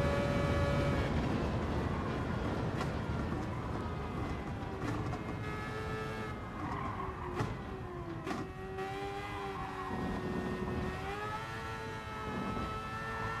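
A racing car engine drops in pitch as the car brakes, then revs up and down through the bends.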